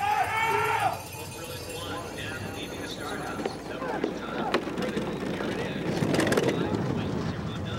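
A bobsled's runners scrape and rumble along ice.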